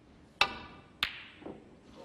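Snooker balls collide with a hard click.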